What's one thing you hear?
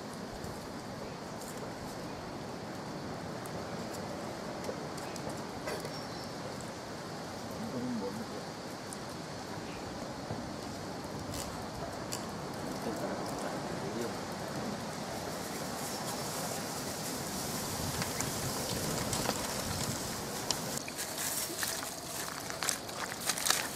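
Water trickles from a tap and splashes onto the ground.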